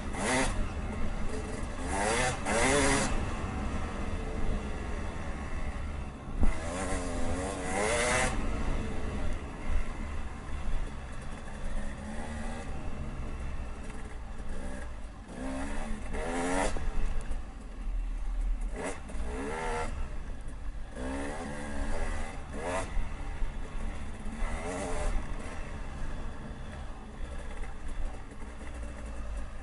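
A dirt bike engine buzzes and revs up and down close by.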